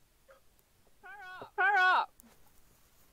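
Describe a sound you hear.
A young man lets out a loud, drawn-out exclamation into a close microphone.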